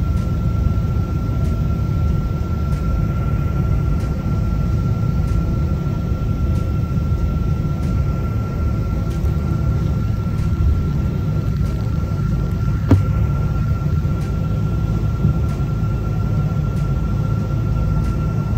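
Jet engines roar steadily from inside an aircraft cabin.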